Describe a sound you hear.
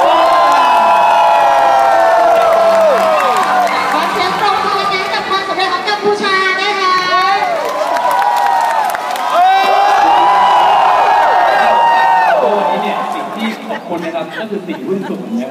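Music plays loudly through loudspeakers.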